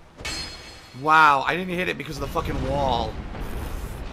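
A man exclaims loudly and with animation into a close microphone.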